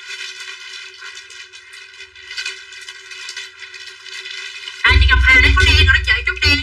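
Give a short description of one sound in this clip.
A young woman talks with animation close to a microphone, growing louder.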